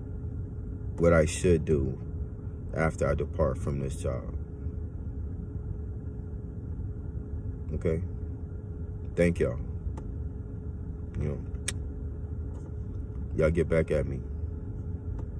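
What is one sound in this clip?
A man speaks in short, calm bursts close to the microphone.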